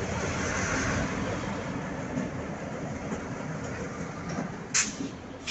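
Diesel locomotive engines idle with a low rumble close by.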